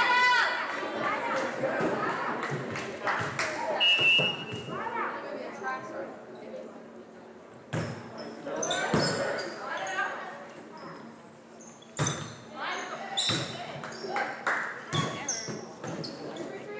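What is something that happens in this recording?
Young women shout and call out on the court.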